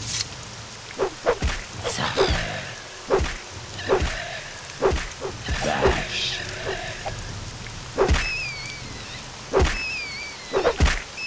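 A spear strikes a flying creature with repeated thuds.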